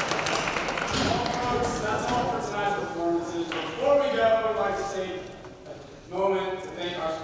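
A young man talks into a microphone over loudspeakers in a large hall.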